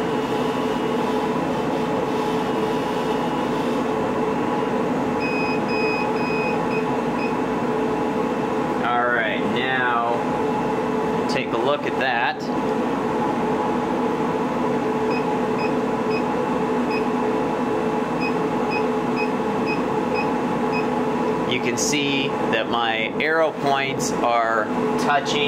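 A machine hums and whirs steadily nearby.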